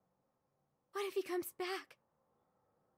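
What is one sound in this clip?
A young woman speaks briefly and with animation into a close microphone.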